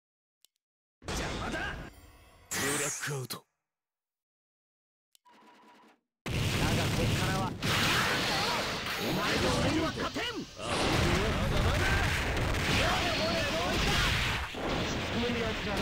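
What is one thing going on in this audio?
Magic blasts and whooshing explosions crash loudly in a video game battle.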